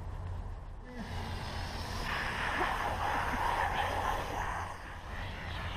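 Water from a bottle splashes onto the pavement.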